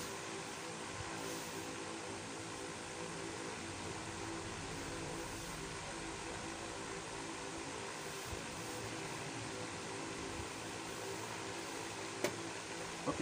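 Hands smooth cloth with a soft rustle.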